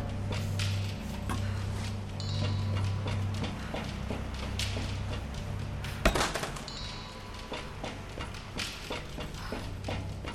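Footsteps clang on a metal roof.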